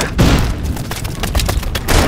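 Footsteps run over stone.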